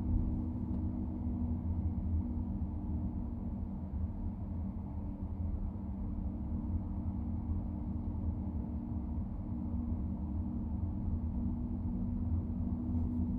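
A car's engine hums low and steady from inside while driving.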